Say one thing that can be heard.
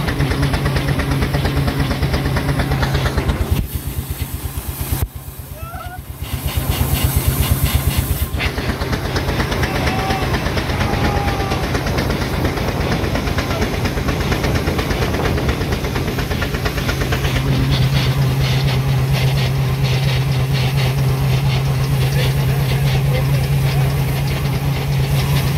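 A steam engine chuffs rapidly and steadily as it drives along.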